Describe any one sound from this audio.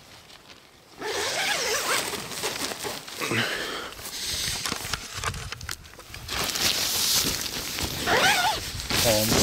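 Tent fabric rustles and flaps close by.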